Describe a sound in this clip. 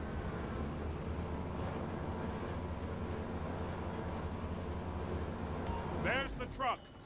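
A crane motor hums low and steady.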